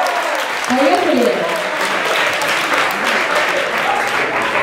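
A crowd claps and applauds.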